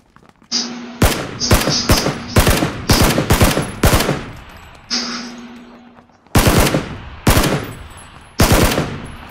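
A rifle fires loud shots in rapid bursts.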